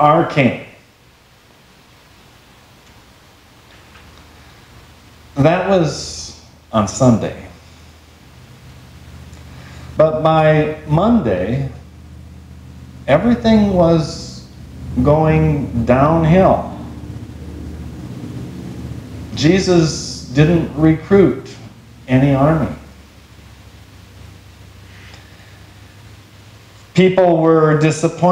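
A middle-aged man speaks calmly in short phrases, with pauses, in an echoing room.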